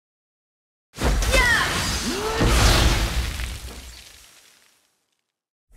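Magic spells whoosh and crackle in a burst of battle effects.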